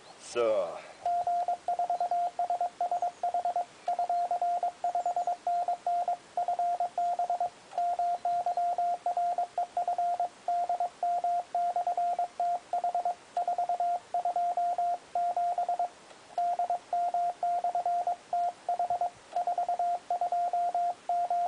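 A radio beeps out a rapid, steady Morse code tone.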